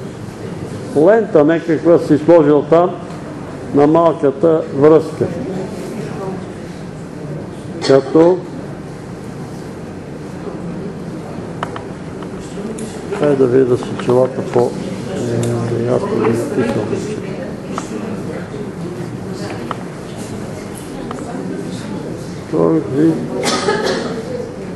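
An elderly man reads aloud in bursts, with pauses, in a room with a slight echo.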